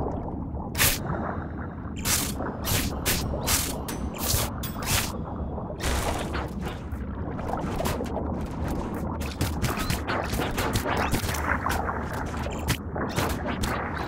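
Game weapon shots zap in quick bursts.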